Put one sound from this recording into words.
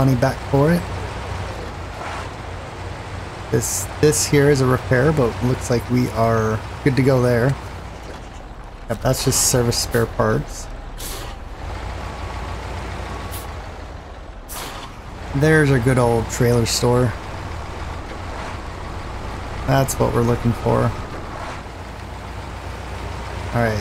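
A heavy truck engine rumbles low and steady.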